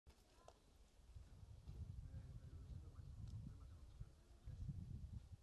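Men talk quietly in the distance outdoors.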